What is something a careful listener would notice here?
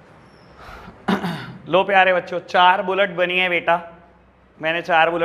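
A man speaks loudly and clearly, explaining, close by.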